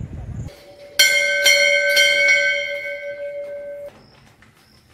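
A metal bell rings loudly and its tone rings on.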